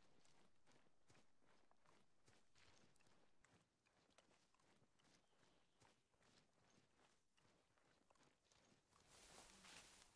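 Footsteps rustle through tall grass at a steady walking pace.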